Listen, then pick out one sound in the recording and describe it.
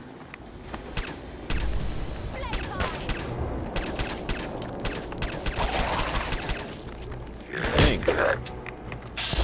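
A pistol fires repeated sharp shots.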